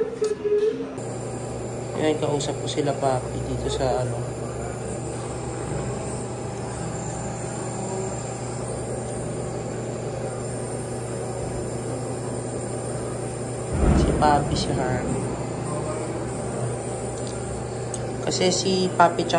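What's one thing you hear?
A nebulizer hums steadily.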